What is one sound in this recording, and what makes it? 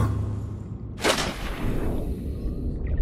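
Water splashes loudly as someone plunges in.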